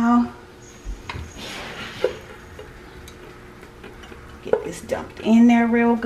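Food slides out of a metal pot into a dish with a soft scraping sound.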